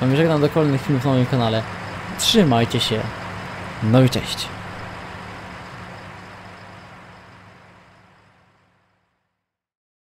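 A tractor engine hums steadily, then slowly fades away.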